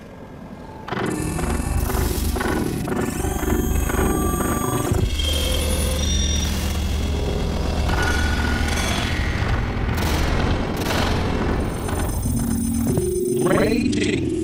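Music plays with a driving beat.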